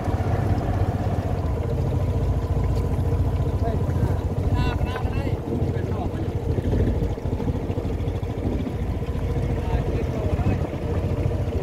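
An airboat engine roars loudly and steadily.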